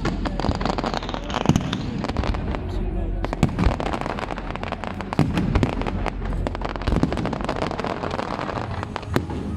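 Fireworks crackle and bang rapidly close by.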